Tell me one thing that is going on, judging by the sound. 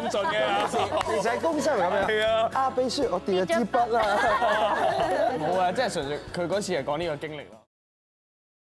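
A group of young women and men laugh together.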